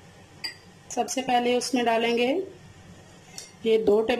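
Liquid pours into a glass bowl.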